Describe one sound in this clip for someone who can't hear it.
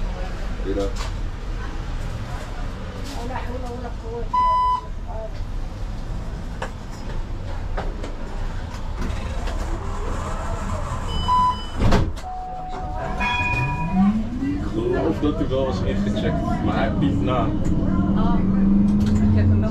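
A tram rumbles along its rails with a rising motor whine.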